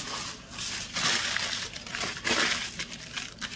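Aluminium foil crinkles and rustles as hands crumple it close by.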